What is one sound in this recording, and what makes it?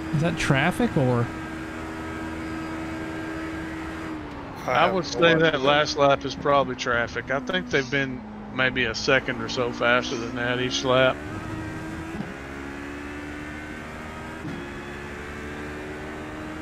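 A racing car engine drones and changes pitch as it shifts gears.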